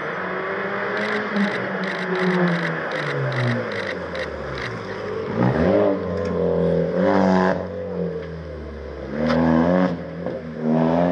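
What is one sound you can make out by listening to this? A rally car engine pops and crackles as the car brakes through a tight turn.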